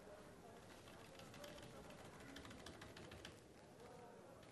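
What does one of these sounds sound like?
Fingers tap on a computer keyboard in quick clicks.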